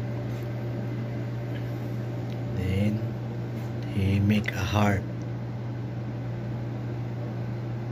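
Milk pours softly into a cup.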